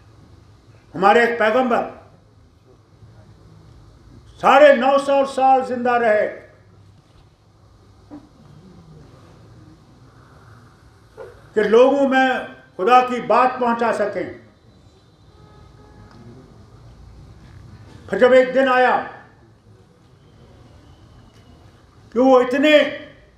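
An elderly man speaks into a microphone with animation, in short bursts with pauses, heard through loudspeakers.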